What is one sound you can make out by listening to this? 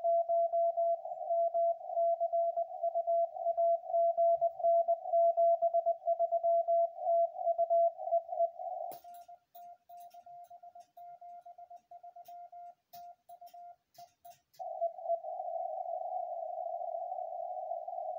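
Morse code beeps come rapidly from a radio receiver.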